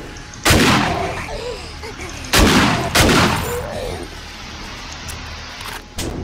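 A shotgun fires loud, echoing blasts.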